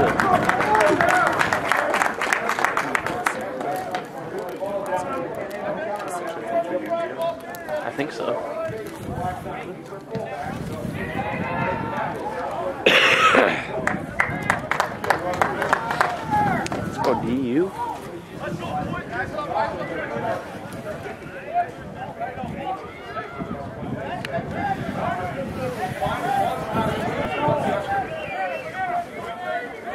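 Spectators shout and cheer from the sidelines outdoors.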